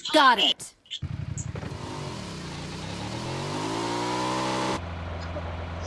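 A motorcycle engine revs, dipping and then rising steadily in pitch.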